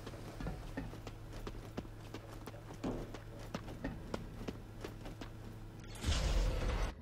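Heavy footsteps run quickly on hard ground.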